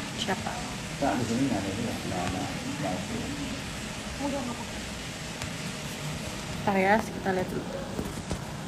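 A young woman speaks softly and close to a phone microphone.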